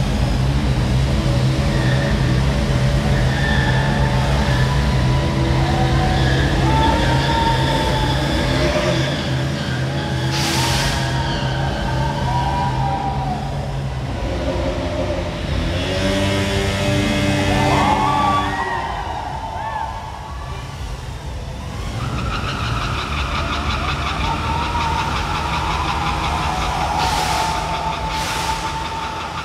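Single-cylinder sport motorcycle engines rev hard in a large echoing hall.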